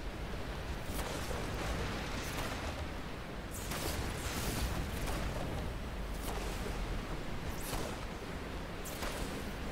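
Short soft clicks sound now and then.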